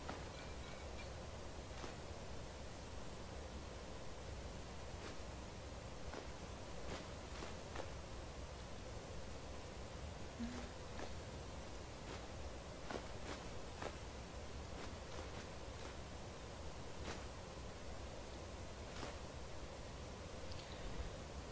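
Soft menu clicks tick now and then as items are scrolled through.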